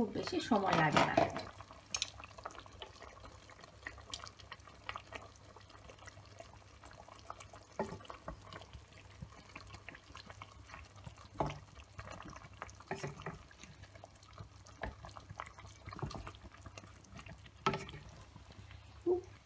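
A wooden spatula scrapes and knocks against a pot.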